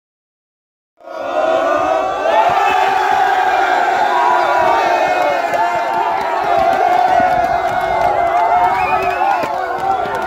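A crowd of young men cheers and shouts loudly outdoors.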